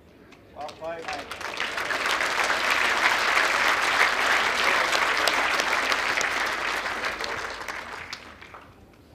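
A crowd applauds loudly, then the applause fades.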